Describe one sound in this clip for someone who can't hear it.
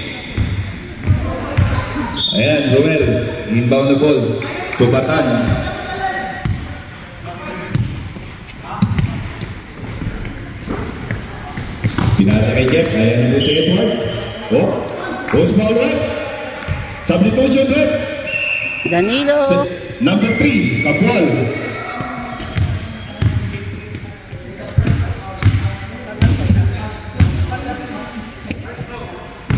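Young men call out and shout to each other across the hall.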